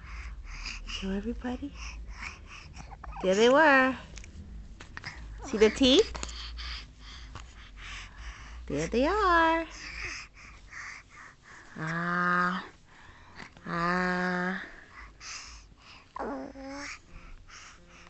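A baby coos and squeals up close.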